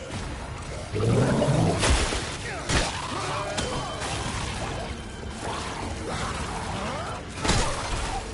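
A creature snarls and shrieks close by.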